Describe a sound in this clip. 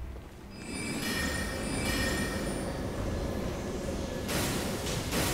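A magic spell crackles and shimmers with a bright ringing.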